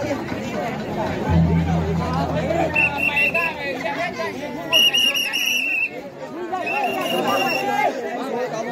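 A crowd of people talks and calls out outdoors.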